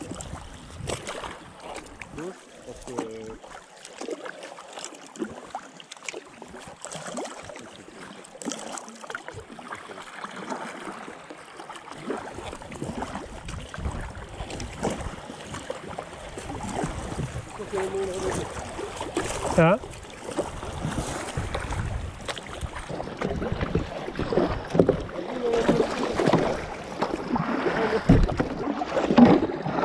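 A paddle splashes and dips into the water in a steady rhythm.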